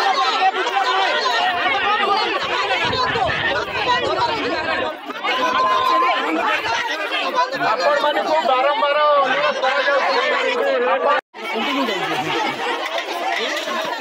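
A crowd of women shout and argue loudly and angrily, close by.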